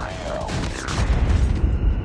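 An automatic rifle fires in a video game.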